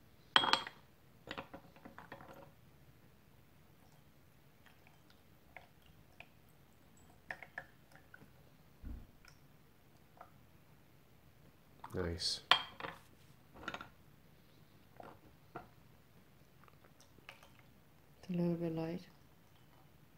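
Porcelain cups and lids clink and tap.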